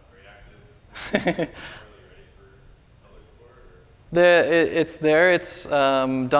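A young man speaks calmly into a microphone, with pauses.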